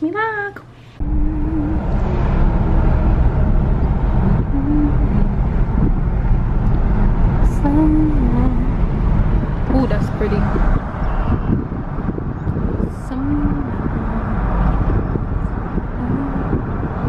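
A car's engine and tyres rumble steadily on the road.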